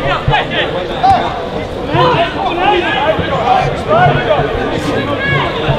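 A crowd of spectators murmurs and calls out in the distance.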